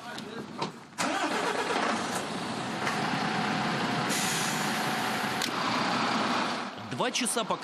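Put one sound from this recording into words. A truck engine starts and runs with a loud rumble.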